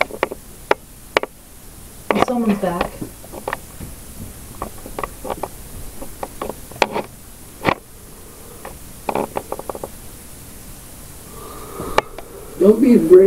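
A phone gives off short electronic clicks and blips.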